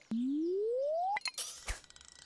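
A fishing rod's cast charges with a rising tone.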